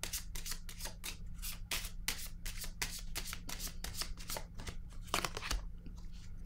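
Cards are shuffled with quick, rapid flicks.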